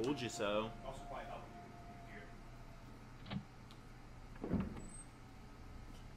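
A door creaks open slowly.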